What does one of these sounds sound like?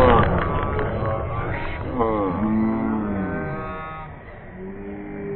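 Young boys shout and cheer excitedly outdoors.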